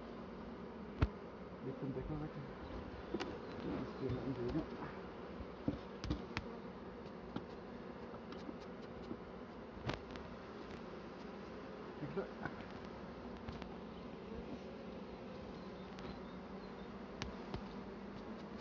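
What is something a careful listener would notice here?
Wooden frames knock and clatter against a hive box.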